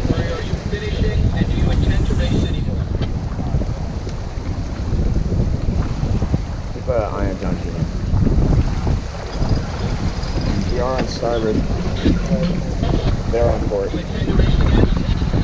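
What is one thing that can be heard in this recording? Water rushes and splashes along a sailboat's hull.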